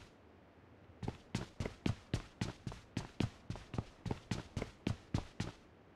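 Footsteps thud quickly and evenly on a hard floor.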